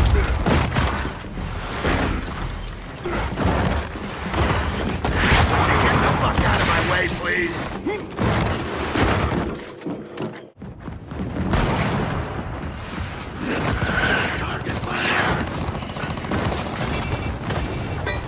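Guns fire in rapid bursts with loud impacts.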